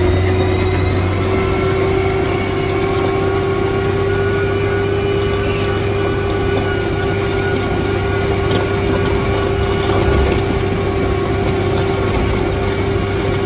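The diesel engine of a motor grader drones under load, heard from inside the cab.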